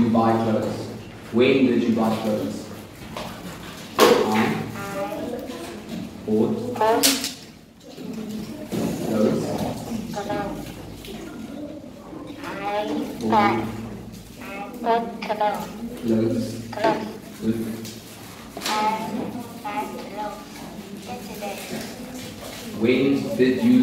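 A young girl answers in a soft voice nearby.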